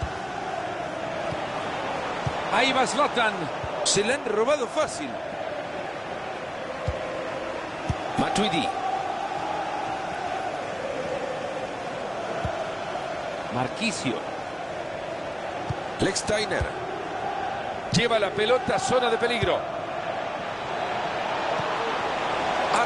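A stadium crowd murmurs and roars steadily.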